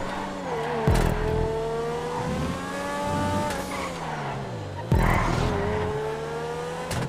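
A race car engine whines at high revs, rising in pitch through the gears.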